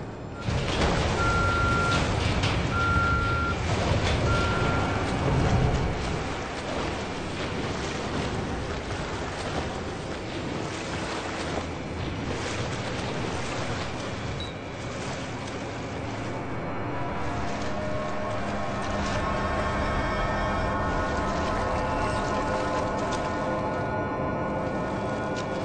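Water splashes and churns loudly through a flood.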